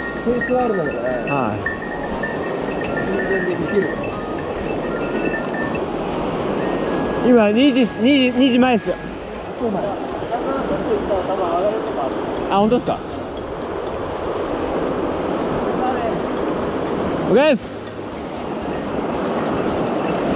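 A mountain river rushes and splashes over rocks nearby.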